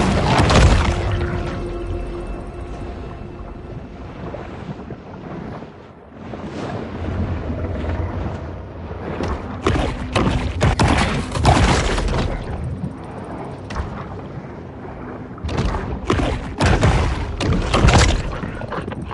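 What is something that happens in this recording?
A shark thrashes and bites at prey with loud, muffled crunching splashes.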